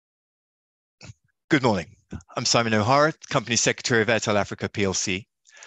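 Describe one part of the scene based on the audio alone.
A second man speaks calmly over an online call.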